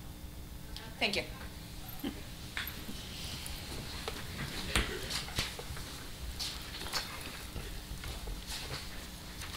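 People shuffle and move about the room with scattered knocks.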